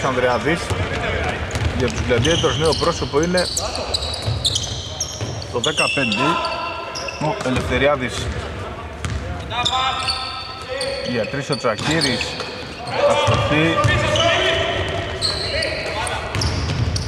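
Sneakers squeak sharply on a hardwood court in a large, echoing hall.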